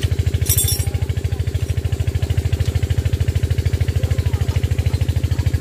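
A small diesel engine chugs fast and steadily close by.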